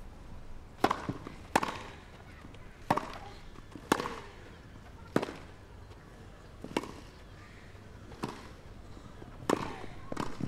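Tennis rackets strike a ball back and forth in a rally on a grass court.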